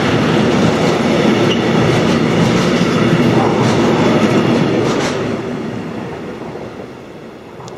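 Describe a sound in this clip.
A freight train rumbles loudly past close by.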